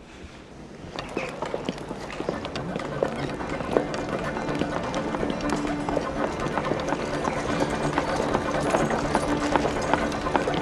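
A horse-drawn carriage rolls past outdoors.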